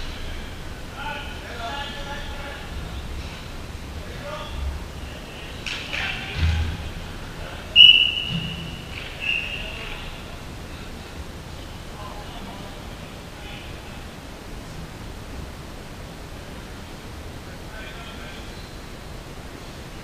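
Young men shout to each other in a large echoing indoor hall.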